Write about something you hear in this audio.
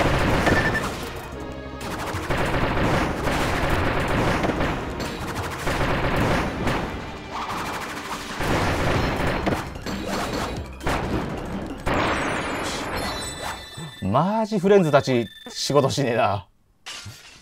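Cartoon fighters' attacks crash, blast and whoosh in quick bursts.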